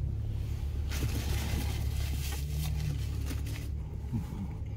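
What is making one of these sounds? A paper napkin rustles.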